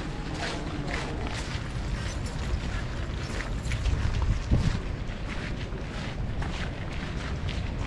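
Horses' hooves shuffle and scrape on gravel.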